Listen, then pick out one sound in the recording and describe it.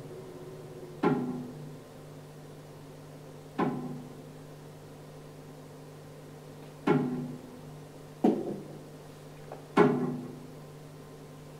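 A double bass is plucked in single sharp, ringing notes with long pauses between them.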